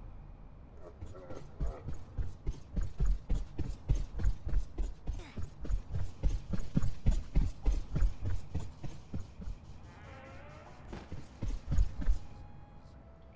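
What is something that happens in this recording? Quick footsteps thud along a hard floor.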